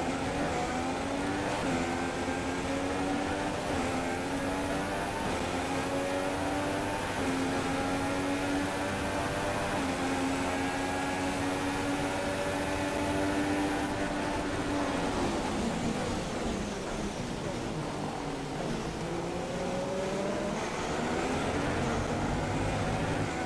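A racing car engine screams at high revs, dropping in pitch with each gear change.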